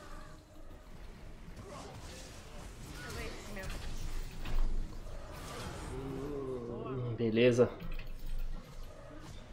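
Game spell effects whoosh and clash.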